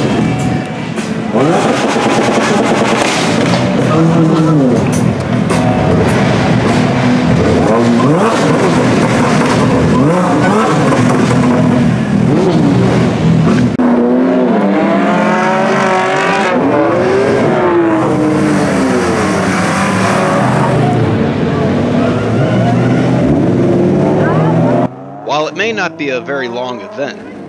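Car engines rev loudly and roar as they pull away.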